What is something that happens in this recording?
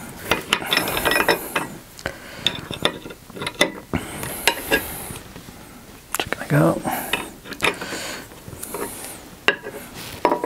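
Metal tools click and clink against metal.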